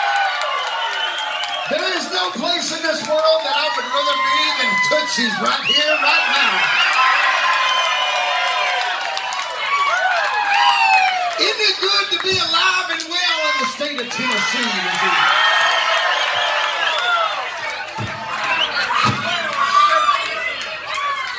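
A crowd cheers and sings along.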